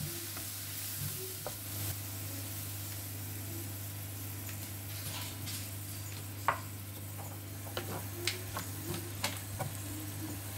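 Vegetables sizzle quietly in a frying pan.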